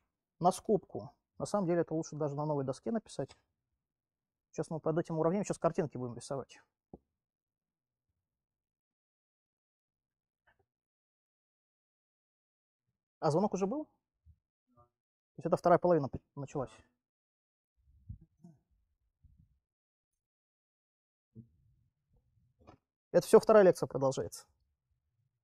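A young man lectures calmly, pausing between phrases.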